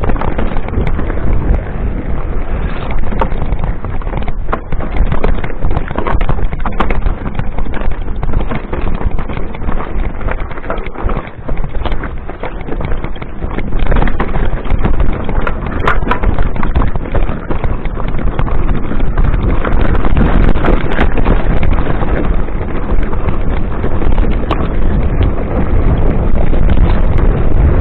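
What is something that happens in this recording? A mountain bike rattles and clatters over a rocky dirt trail.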